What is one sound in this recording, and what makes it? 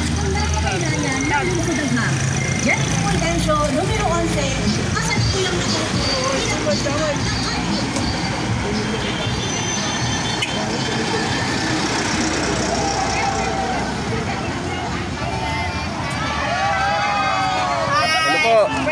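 A crowd of men and women shout and cheer along the roadside.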